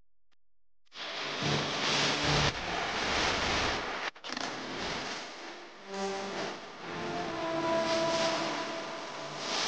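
Water laps against the hull of a small wooden boat.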